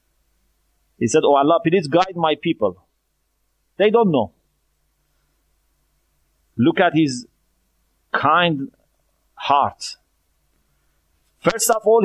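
A middle-aged man speaks calmly into a close microphone, pausing between phrases.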